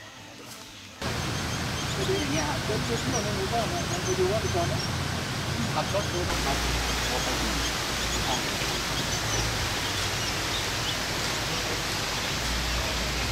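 Wind rushes across the microphone outdoors.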